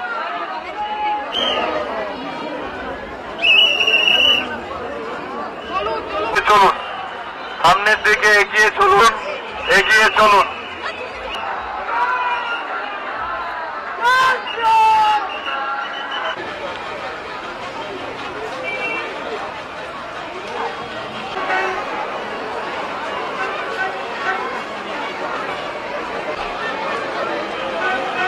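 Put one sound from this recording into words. A large crowd murmurs and chatters all around.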